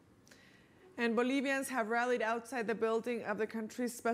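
A woman speaks calmly and clearly into a microphone, like a news reader.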